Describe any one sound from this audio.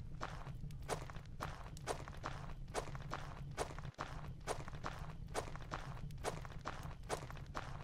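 Footsteps thud steadily on a stone floor in an echoing passage.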